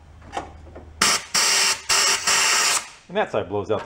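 A ratchet wrench clicks rapidly on an engine bolt.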